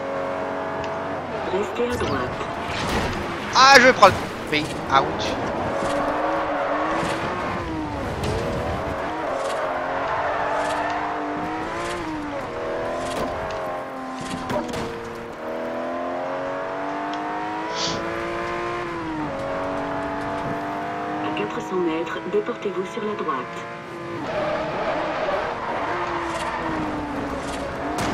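A racing car engine roars, revving up and dropping with each gear change.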